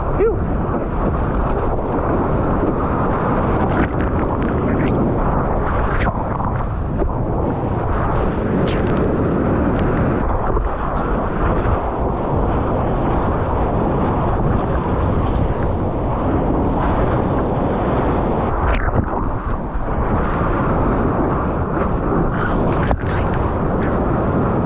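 Water rushes and splashes against a surfboard.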